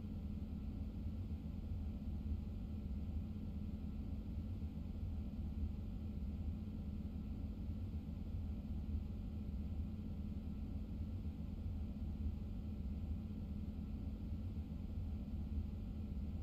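A train engine hums low and steady.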